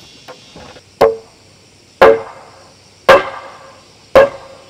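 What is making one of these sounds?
A hammer strikes wood in loud, evenly spaced blows.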